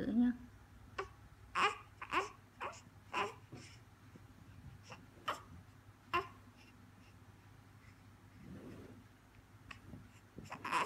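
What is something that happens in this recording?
A baby sucks and smacks on its hand.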